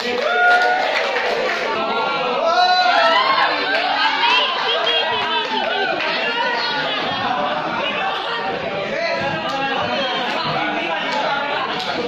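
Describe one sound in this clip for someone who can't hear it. A group of young men sing loudly together.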